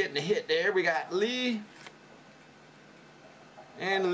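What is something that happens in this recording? Stiff cards slide and rub against each other in a hand.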